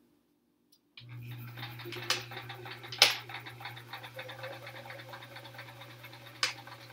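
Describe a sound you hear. A sewing machine hums and rattles steadily as it stitches.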